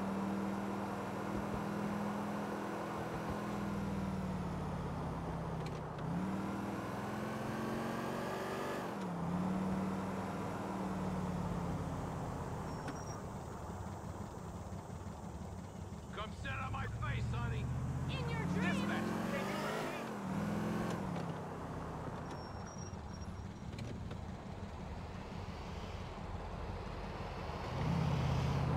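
A car engine hums and rises and falls in pitch as the car speeds up and slows down.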